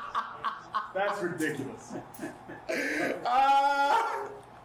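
A man laughs loudly nearby.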